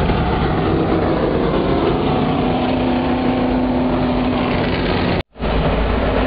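Race car engines roar loudly as the cars speed past.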